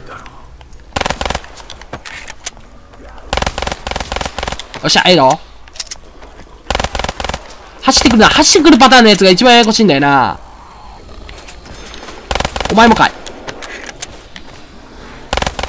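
Gunshots ring out in short bursts.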